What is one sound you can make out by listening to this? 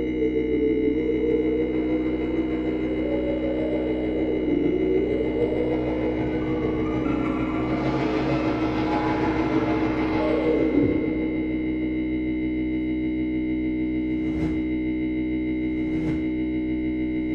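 A film soundtrack plays loudly through loudspeakers.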